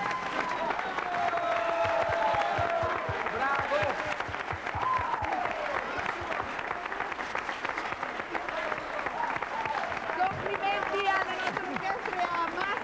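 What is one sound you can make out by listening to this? A band plays a lively tune with electric guitar and drums.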